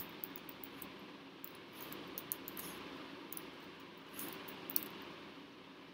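Keyboard keys click quickly as someone types.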